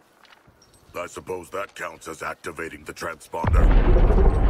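A man speaks calmly in a deep, gravelly voice.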